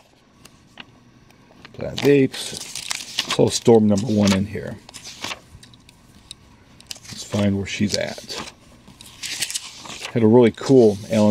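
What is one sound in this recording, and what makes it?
Glossy magazine pages turn and rustle close by.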